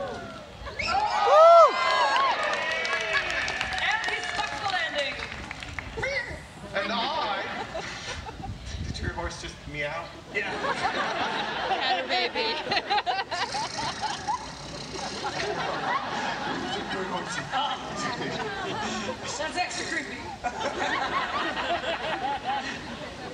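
Several actors speak loudly and with animation outdoors.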